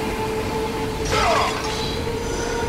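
Metal blades strike and shatter stone.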